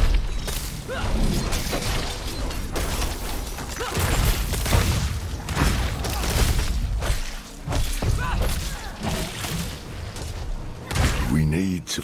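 Magic blasts and heavy impacts crash in quick succession.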